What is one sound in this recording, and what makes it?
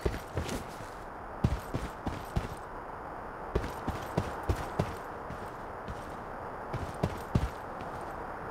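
Footsteps thud steadily on a hard surface.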